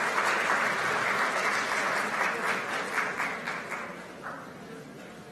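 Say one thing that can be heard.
A small audience applauds in a large hall, then the clapping dies away.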